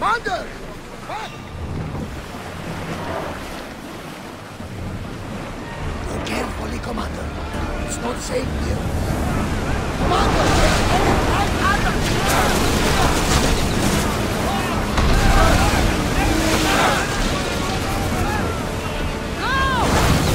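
Waves splash against a wooden ship's hull as it sails.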